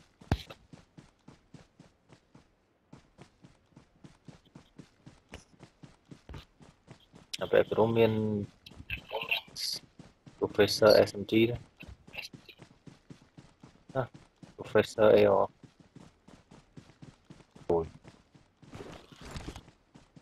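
A figure crawls through grass with quick, even rustling steps.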